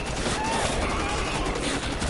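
An explosion bursts.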